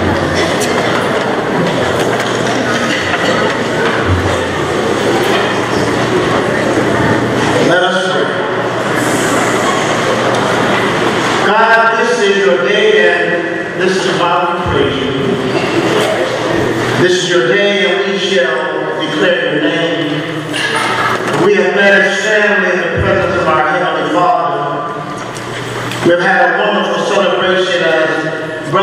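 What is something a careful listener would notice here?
A man speaks steadily through a microphone in a large echoing hall.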